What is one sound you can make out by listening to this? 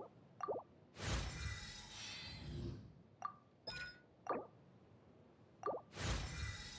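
A bright magical whoosh swells and fades.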